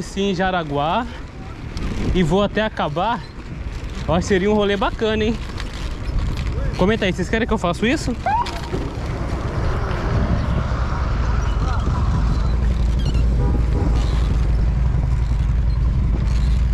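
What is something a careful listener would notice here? Bicycle tyres roll along a paved path.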